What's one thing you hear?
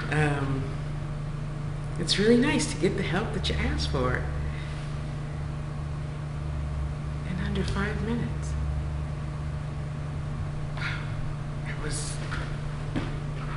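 A woman speaks casually and close by, with pauses.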